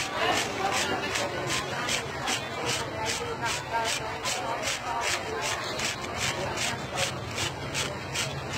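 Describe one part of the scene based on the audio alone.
A blade scrapes quickly and rhythmically across a dried husk.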